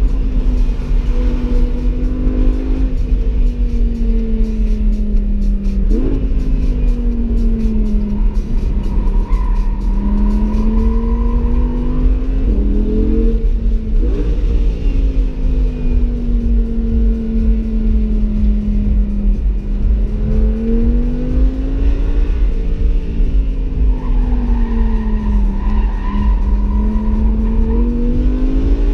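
Wind rumbles steadily against the car.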